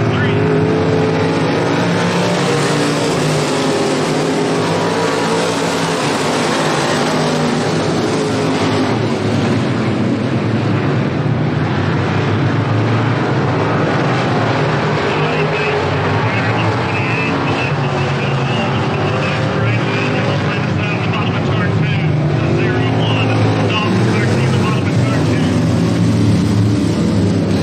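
Race car engines roar loudly, rising and falling as cars speed past outdoors.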